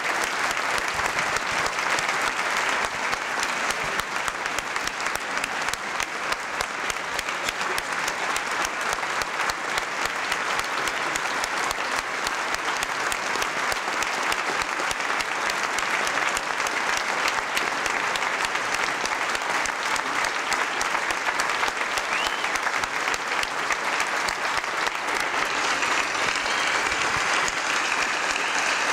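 A large crowd applauds and cheers steadily in a big hall.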